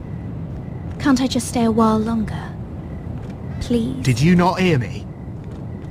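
A young woman pleads in a worried voice, close by.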